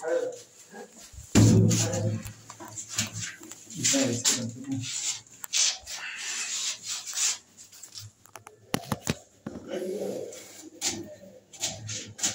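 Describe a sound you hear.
A phone knocks and rubs as it is handled.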